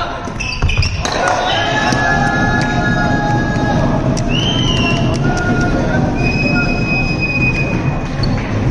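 Young men shout and cheer together.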